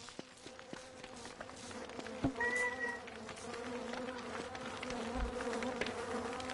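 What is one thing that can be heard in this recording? Light footsteps patter quickly.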